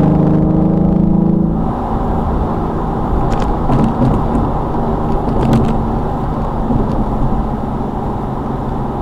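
A car engine hums steadily with road noise rumbling inside the cabin.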